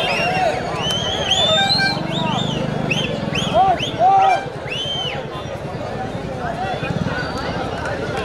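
A large crowd cheers and shouts noisily outdoors.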